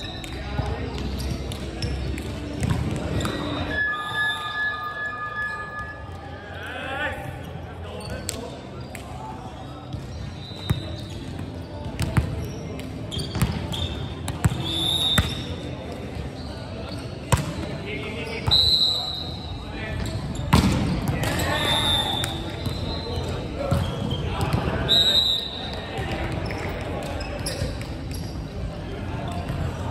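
Players call out and shout to each other across the hall.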